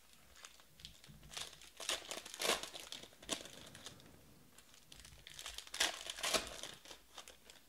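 Foil packs rustle and crinkle as they are torn open.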